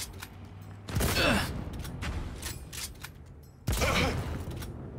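Gunshots bang sharply several times.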